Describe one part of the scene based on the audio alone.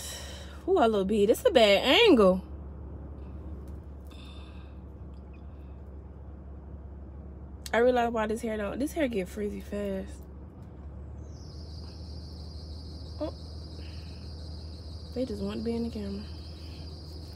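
A woman speaks close by with expressive, sighing tones.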